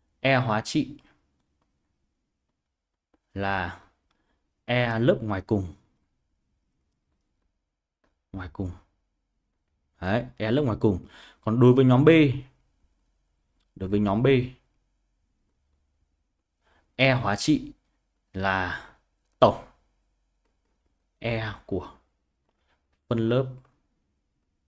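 A young man speaks calmly and clearly into a close microphone, in short phrases with pauses.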